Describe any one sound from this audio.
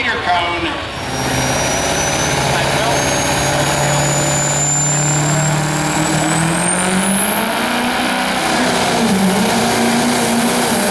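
A pickup truck's engine revs and strains as it pulls a heavy load, rising in pitch.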